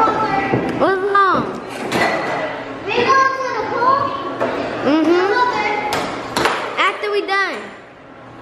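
Children shout and squeal playfully nearby.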